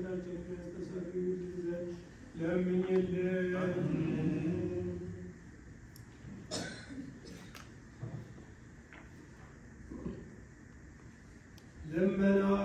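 A man chants slowly in a low, sustained voice.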